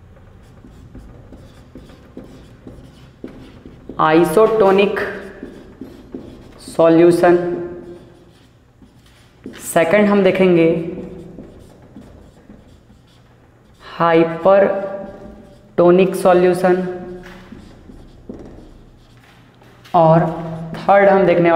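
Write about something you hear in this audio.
A marker squeaks faintly on a whiteboard.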